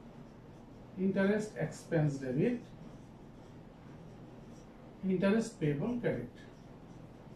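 A middle-aged man speaks calmly nearby, in short phrases.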